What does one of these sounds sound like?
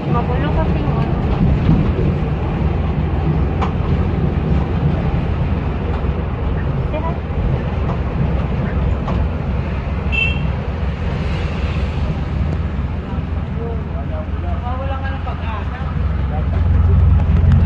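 A vehicle engine rumbles low and steady from inside.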